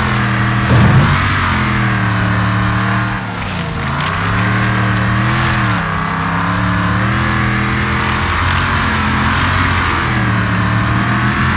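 An engine drones steadily, rising and falling in pitch as a vehicle speeds over dirt.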